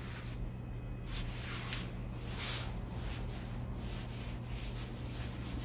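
A cloth wipes across glass.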